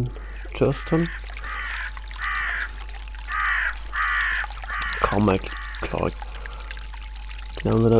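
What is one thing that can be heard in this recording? Water splashes steadily in a fountain.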